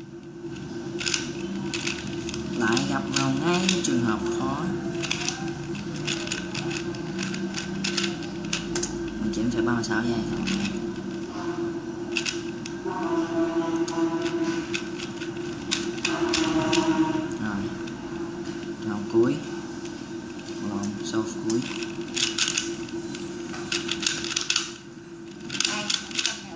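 A plastic puzzle cube clicks and clacks quickly as it is twisted by hand.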